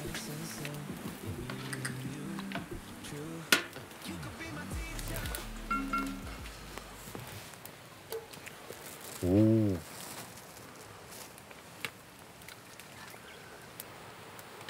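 A pot of soup bubbles and simmers.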